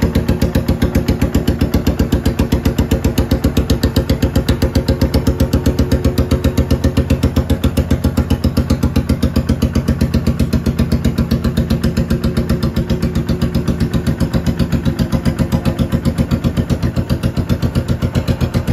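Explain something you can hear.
A motorcycle engine idles close by with a steady, lumpy thumping.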